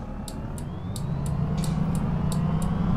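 A bus engine revs up again as the bus pulls away.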